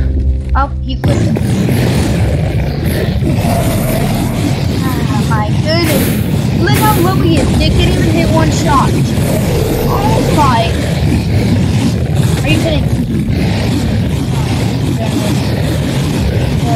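A monstrous creature roars and rumbles.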